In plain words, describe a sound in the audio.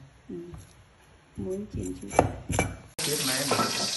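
A metal lid clanks against a pan.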